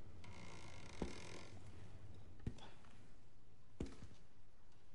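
Slow, heavy footsteps thud on a wooden floor.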